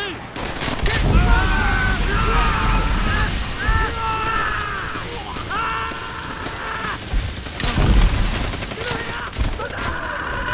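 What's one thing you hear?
A flamethrower roars with a rushing blast of fire.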